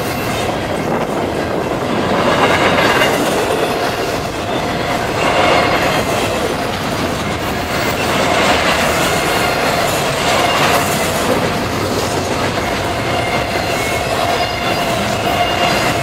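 Steel wheels squeal against the rails.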